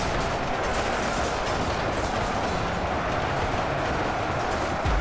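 A large battle rages with a steady, dense clatter of weapons.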